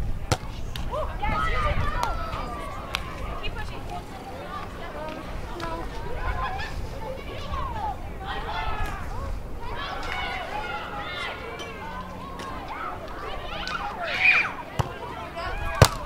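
Young women talk and call out to each other outdoors.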